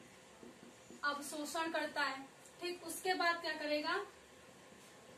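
A young woman speaks calmly and clearly nearby.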